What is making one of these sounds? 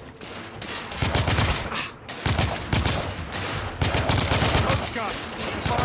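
An automatic rifle fires rapid, loud bursts close by.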